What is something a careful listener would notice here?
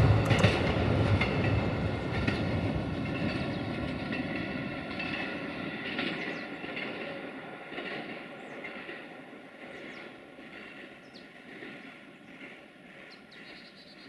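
A train rumbles in the distance and slowly fades.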